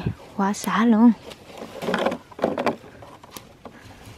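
Bean plant leaves rustle as pods are picked by hand.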